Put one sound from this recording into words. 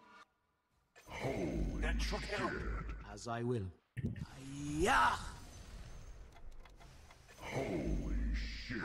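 Computer game combat effects clash and burst.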